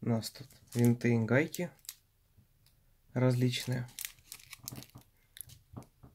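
A plastic bag crinkles in someone's hands.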